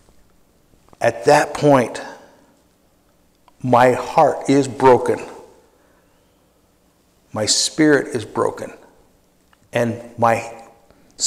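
An elderly man speaks slowly and deliberately into a microphone, in short phrases with pauses, in a room with a slight echo.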